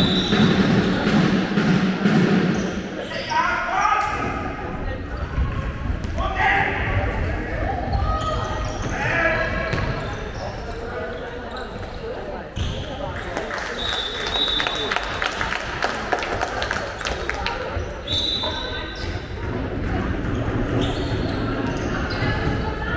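A ball bounces on the floor.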